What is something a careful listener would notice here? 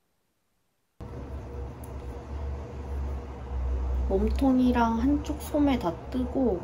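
Knitting needles click softly.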